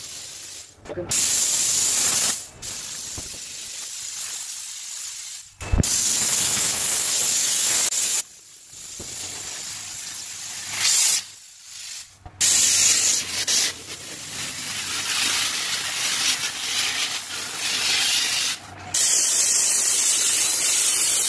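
A steam cleaner hisses loudly in bursts.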